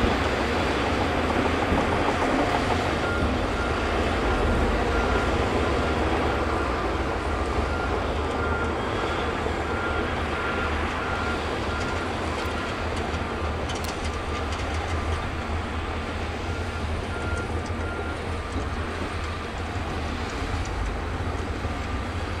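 A bulldozer blade scrapes and pushes dirt.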